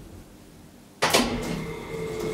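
An elevator door slides open with a rumble.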